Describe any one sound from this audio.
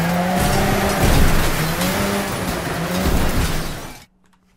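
Metal crunches as cars smash together.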